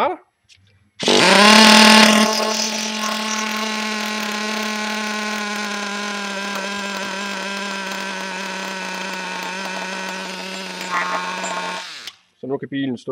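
A small model engine runs with a steady, high buzzing drone.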